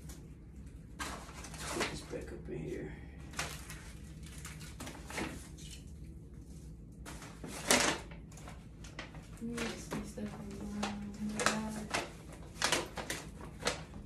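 Paper rustles and crinkles as a gift bag is opened.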